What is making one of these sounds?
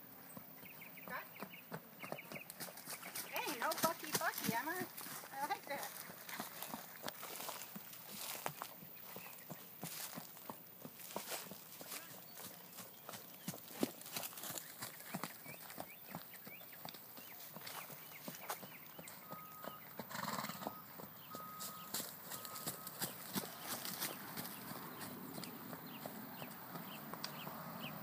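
A horse trots with dull hoofbeats on dirt.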